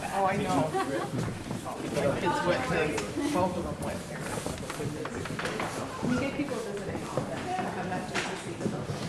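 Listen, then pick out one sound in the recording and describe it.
People talk in the background of an echoing hall.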